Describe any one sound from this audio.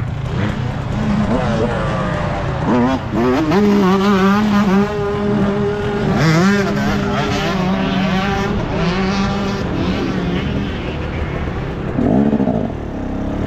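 A dirt bike engine revs loudly up close, its pitch rising and falling.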